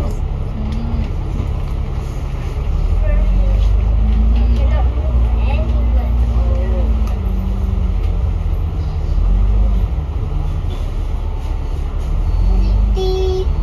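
A bus engine rumbles and hums steadily as it drives along a city street.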